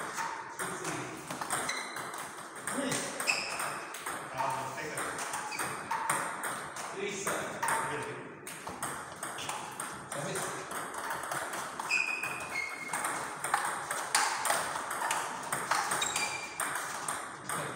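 Table tennis balls click quickly against paddles and tables.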